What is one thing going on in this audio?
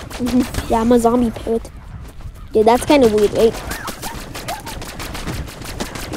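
Energy blasts zap and crackle in quick bursts.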